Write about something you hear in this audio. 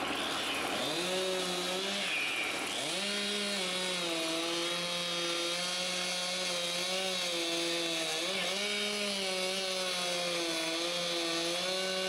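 A petrol chainsaw cuts into a tree trunk, its engine revving and dipping.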